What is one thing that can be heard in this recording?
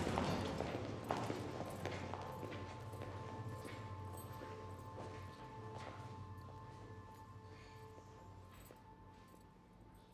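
Footsteps echo in a bare room.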